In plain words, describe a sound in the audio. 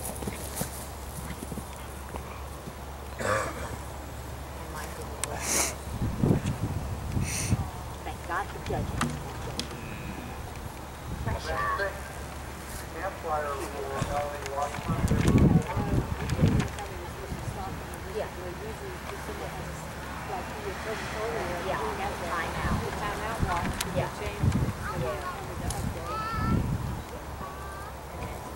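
A horse's hooves thud on grass as it canters and jumps.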